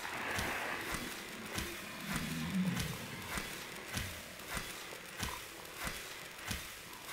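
A knife slashes repeatedly at a large creature underwater.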